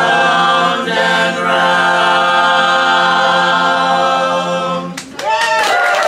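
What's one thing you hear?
A group of men and women sing together, holding a long chord.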